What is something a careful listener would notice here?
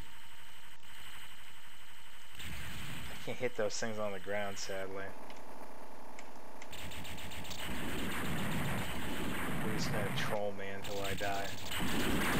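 Rapid arcade-style gunfire rattles without a break.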